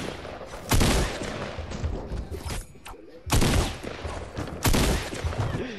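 A pickaxe swings and thuds against wood.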